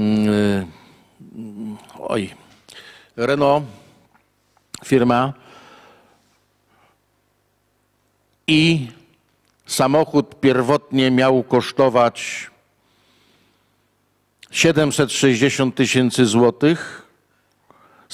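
An older man reads out calmly into a microphone, with pauses.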